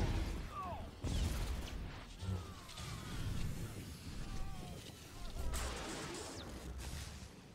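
Electric bolts crackle and zap in bursts.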